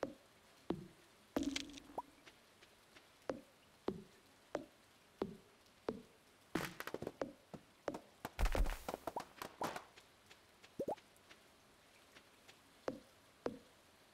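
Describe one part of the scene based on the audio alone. Short, sharp game sound effects pop and thud at irregular intervals.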